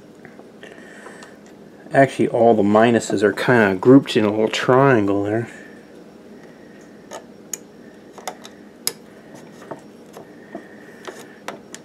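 Small clicks and rustles of handling sound close by.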